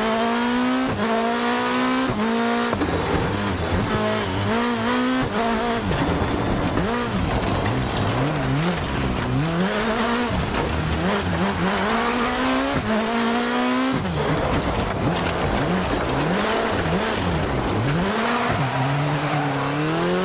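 Tyres hiss and splash over a wet, muddy track.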